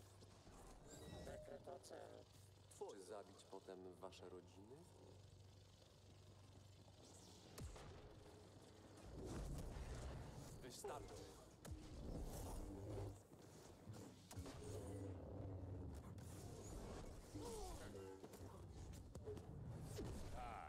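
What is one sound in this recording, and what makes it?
A laser sword hums and whooshes as it swings.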